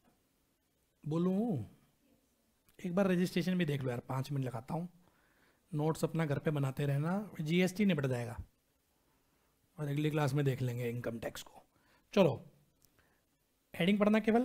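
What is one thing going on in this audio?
A man lectures calmly into a close microphone.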